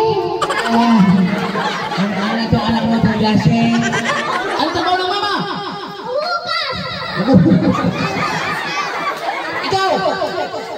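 Children chatter and shout close by.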